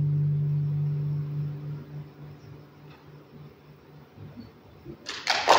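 A guitar chord rings out and slowly fades in a large hall.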